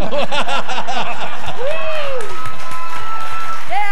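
A group of people laughs together.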